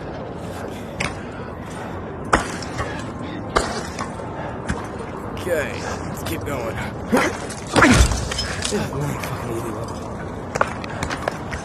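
Gloved hands slap and grip against a brick wall in short, sharp thumps.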